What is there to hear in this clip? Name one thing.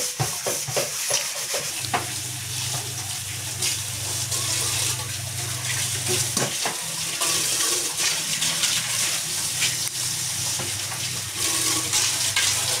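Dishes clink and clatter against each other.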